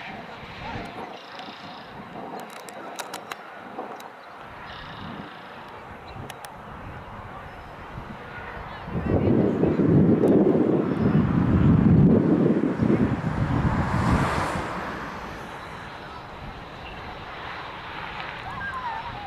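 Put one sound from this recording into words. Young players shout to each other in the distance across an open field.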